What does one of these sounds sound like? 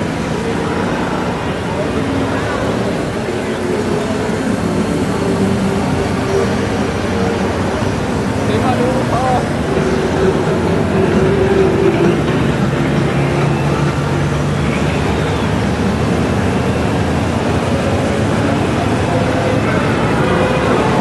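A long line of motorcycle engines rumbles steadily past close by.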